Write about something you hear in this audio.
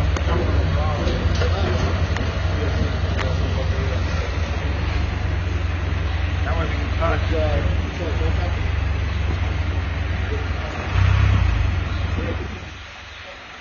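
A motorcycle engine idles with a low, steady rumble close by, then cuts off.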